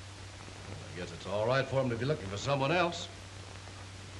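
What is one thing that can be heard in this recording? A man speaks calmly and clearly, heard close by.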